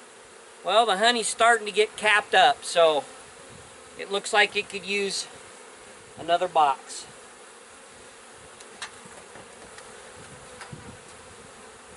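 Wooden hive frames knock and scrape.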